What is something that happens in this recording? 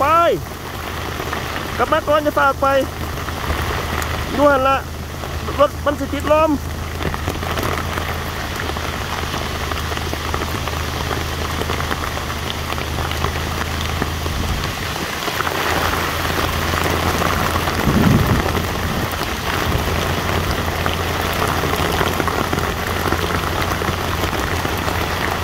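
Heavy rain pours down and patters on a plastic tarp.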